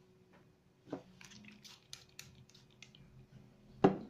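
A spray bottle hisses in short squirts.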